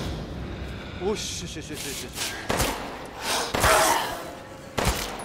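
A creature growls and snarls.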